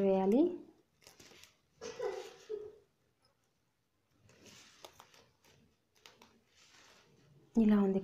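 Plastic strips rustle and crinkle close by.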